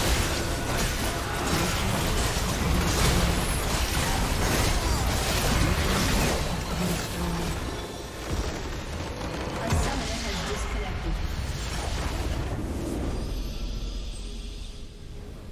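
Game spell effects crackle and boom during a battle.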